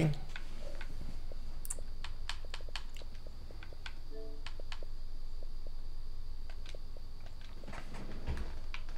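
Short soft clicks tick now and then as a menu is stepped through.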